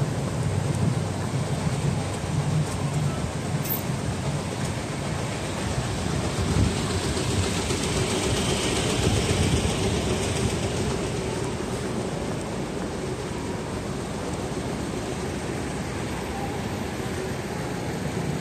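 Cars drive past on a busy street.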